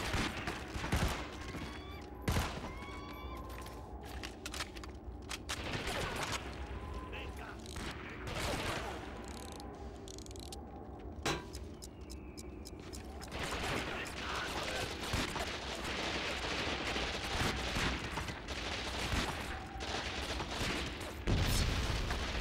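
Gunshots crack now and then.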